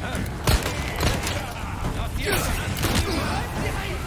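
A handgun fires sharp shots.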